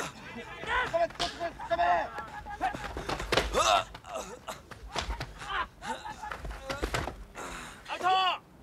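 Young men shout excitedly outdoors.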